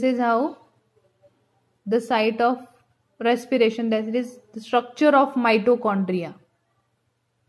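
A woman speaks clearly and calmly, close by.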